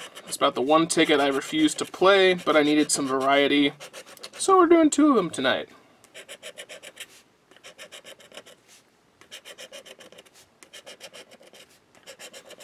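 A plastic tool scratches rapidly across a card in short bursts.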